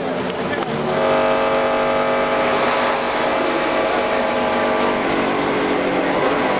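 A race car engine roars steadily from inside the car.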